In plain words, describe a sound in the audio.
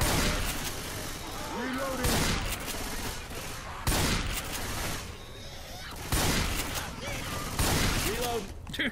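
A shotgun fires loud blasts, one every second or two.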